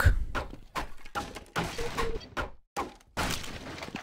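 Wooden crates break apart.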